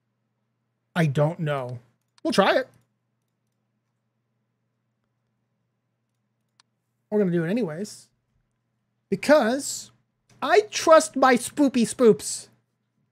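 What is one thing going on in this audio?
A man talks into a close microphone with animation, in short bursts.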